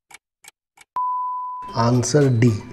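A timer beeps once in a long tone.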